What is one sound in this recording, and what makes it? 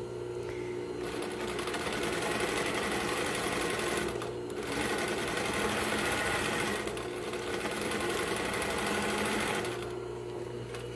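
A sewing machine hums and whirs as it stitches fabric.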